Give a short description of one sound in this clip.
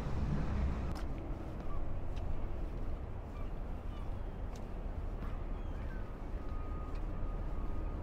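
Footsteps knock now and then on a wooden boardwalk.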